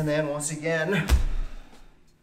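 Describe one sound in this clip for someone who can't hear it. Knees thump onto a padded mat.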